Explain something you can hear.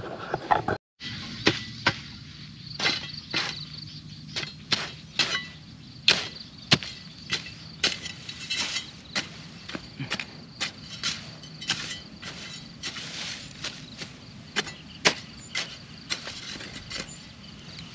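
A hoe chops into dry soil with repeated dull thuds.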